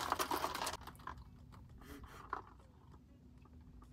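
A young woman sips a drink through a straw.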